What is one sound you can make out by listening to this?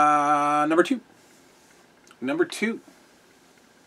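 A man speaks briefly and casually, close to the microphone.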